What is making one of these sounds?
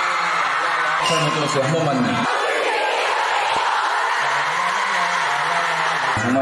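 A crowd cheers and screams loudly.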